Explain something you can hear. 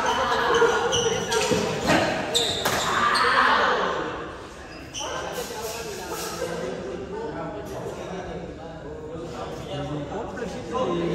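Badminton rackets hit a shuttlecock back and forth in an echoing hall.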